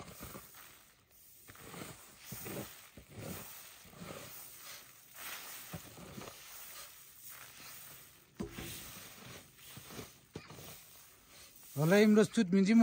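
A shovel scrapes and tosses grain.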